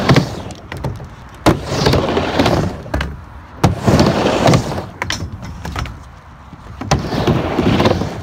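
Skateboard wheels roll on a wooden ramp.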